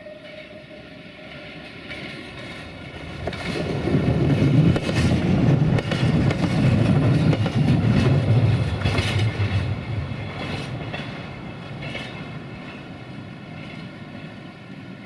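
A diesel railcar approaches, rumbles loudly past close by and fades into the distance.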